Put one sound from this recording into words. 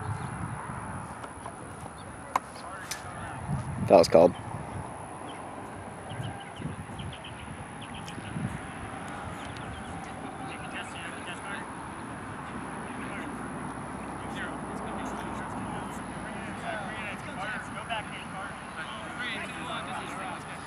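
Young men shout to each other in the distance across an open field.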